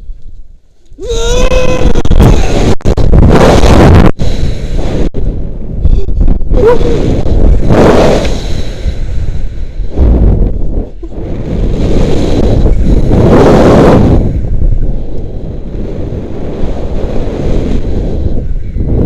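Wind rushes loudly past a person during a rope jump fall and swing.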